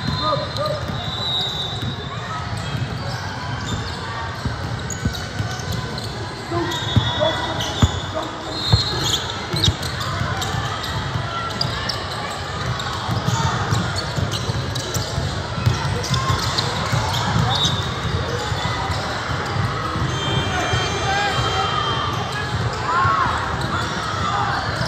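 A basketball bounces on the court with thuds that echo in a large hall.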